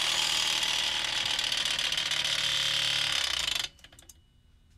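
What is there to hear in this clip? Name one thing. A motor-driven metal disc spins with a loud, steady high whir, then stops suddenly.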